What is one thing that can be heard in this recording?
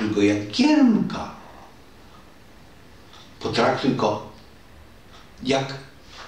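An elderly man speaks calmly and closely, with long pauses.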